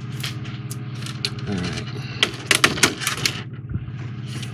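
Hands lift a plastic model out of its crinkling packaging.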